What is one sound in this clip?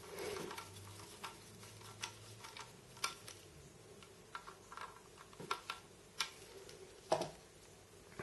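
A small screwdriver clicks softly against metal parts.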